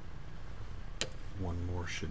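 A plastic measuring cylinder knocks lightly on a hard tabletop.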